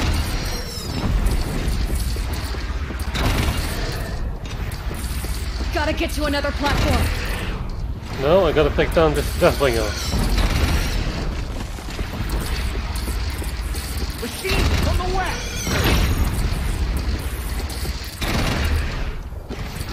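Gunfire and explosions boom from a game.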